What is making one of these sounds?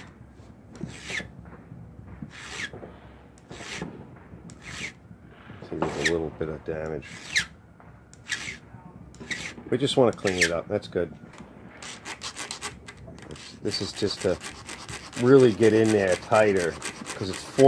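A metal tool scrapes against a metal bar in short, repeated strokes.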